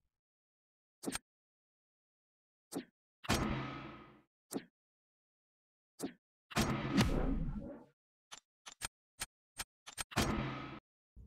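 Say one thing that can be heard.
Short clicks and chimes from a game menu sound.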